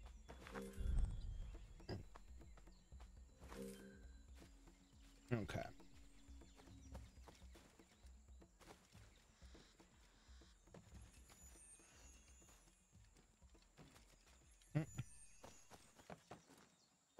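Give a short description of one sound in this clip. Footsteps rustle through dry leaves.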